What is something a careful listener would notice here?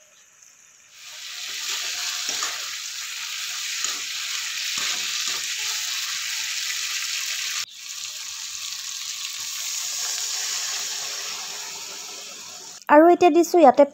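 Food sizzles loudly in hot oil.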